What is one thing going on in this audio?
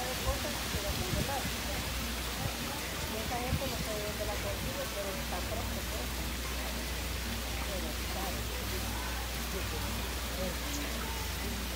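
Water trickles and splashes steadily between pools outdoors.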